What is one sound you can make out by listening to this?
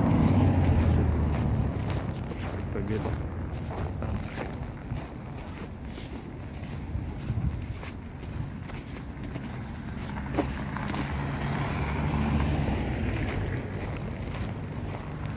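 Cars drive past on a snowy road nearby.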